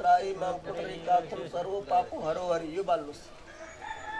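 A man recites a prayer in a loud, sing-song voice close by.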